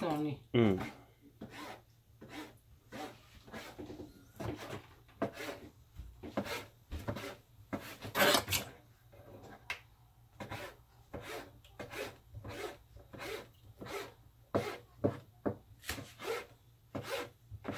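A knife chops on a cutting board in steady, repeated knocks.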